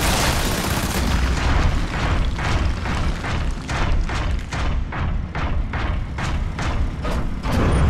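Heavy mechanical footsteps stomp.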